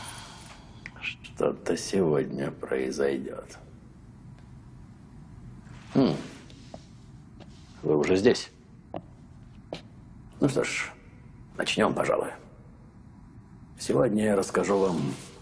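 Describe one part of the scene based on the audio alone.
A middle-aged man speaks theatrically, close by, in short bursts.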